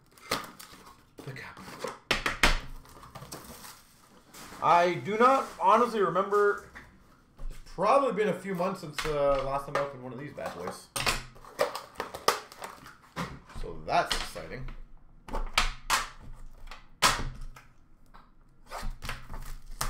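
Cards and a metal tin click and clatter as they are handled.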